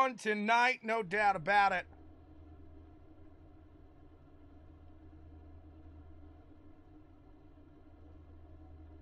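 Racing car engines idle and rumble in a low, steady drone.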